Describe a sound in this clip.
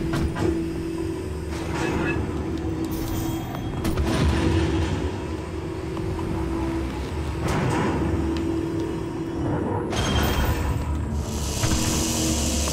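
A low mechanical drone hums steadily.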